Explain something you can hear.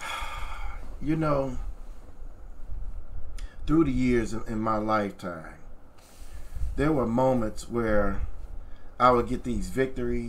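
A man speaks calmly and closely into a microphone.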